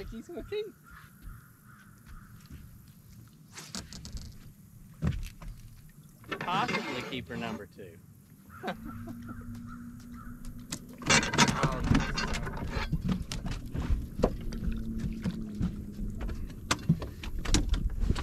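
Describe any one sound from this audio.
Feet thump and knock on a boat's deck.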